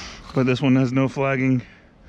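Fingers scrape in loose soil.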